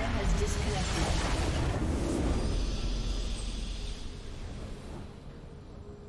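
A magical burst whooshes and booms loudly, then fades.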